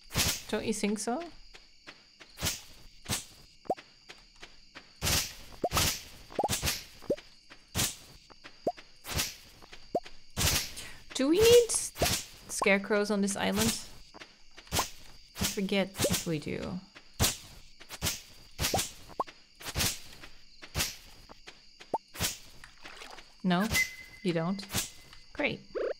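Short game sound effects of chopping and cutting ring out repeatedly.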